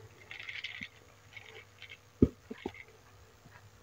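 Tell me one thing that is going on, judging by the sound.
Ice cubes clink against a glass.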